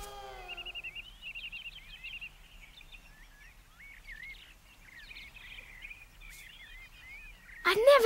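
A bird chirps overhead.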